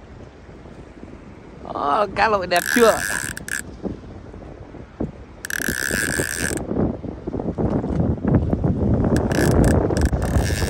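Wind blows across the open water.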